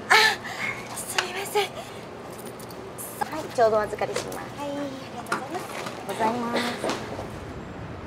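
A young woman speaks softly and apologetically.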